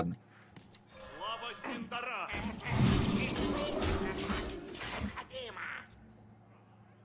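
A game's sound effects whoosh and burst.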